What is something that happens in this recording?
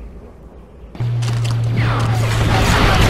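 Laser blasters fire in rapid bursts, loud and close.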